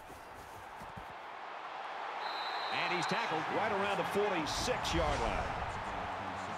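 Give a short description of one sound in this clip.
A large stadium crowd roars and cheers, growing louder.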